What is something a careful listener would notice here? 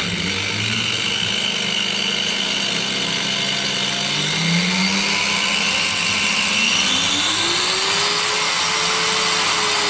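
An angle grinder motor whirs steadily, then rises in pitch as it speeds up.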